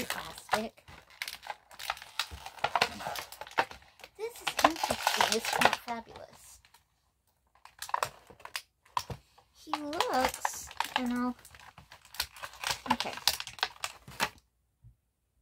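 Cardboard packaging rustles and scrapes as it is handled.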